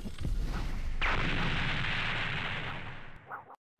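Fire crackles and whooshes.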